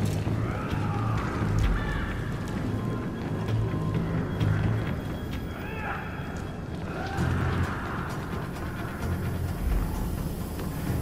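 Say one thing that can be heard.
Footsteps patter quickly on a wet hard floor.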